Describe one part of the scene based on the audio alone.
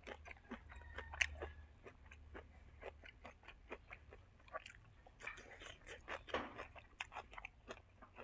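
Crisp leaves crunch as a man bites into them.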